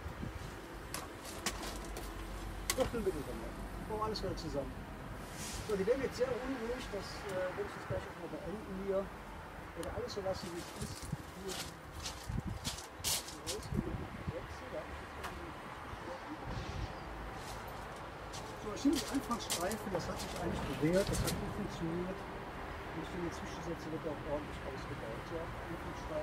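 A metal tool scrapes and knocks against wooden hive frames.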